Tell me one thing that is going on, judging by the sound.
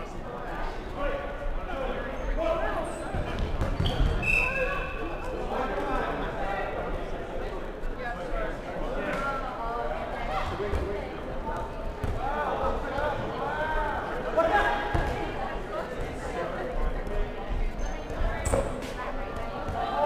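Young players shout and call out to each other, echoing in a large indoor hall.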